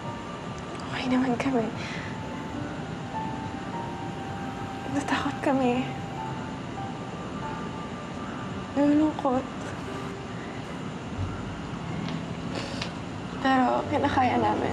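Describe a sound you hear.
A young woman speaks close by in a tearful, shaky voice.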